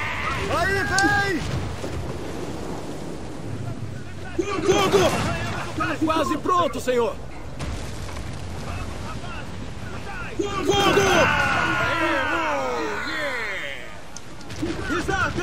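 Rough sea waves surge and roar in a strong wind.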